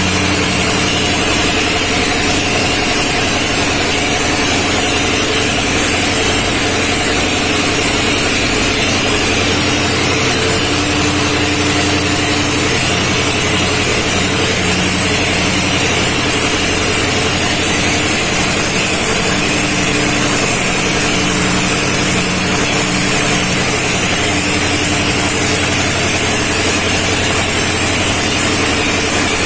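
A diesel engine runs loudly and steadily.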